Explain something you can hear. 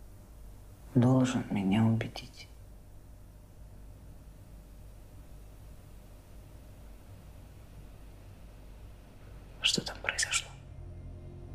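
A woman speaks softly and sadly, close by.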